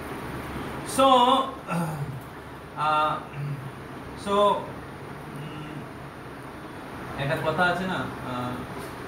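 A group of men's voices chant together in short, loud calls.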